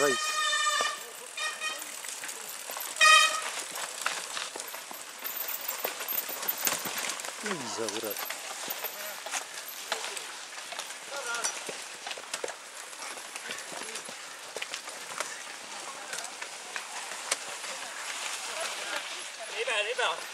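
Mountain bikes rattle and clatter over a bumpy dirt trail.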